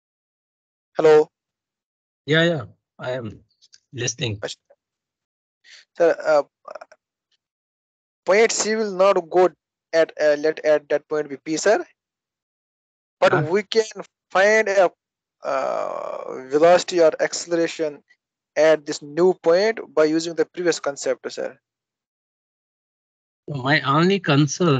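A young man speaks calmly through an online call microphone, in bursts with pauses.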